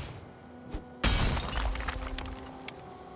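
Rocks crumble and tumble apart.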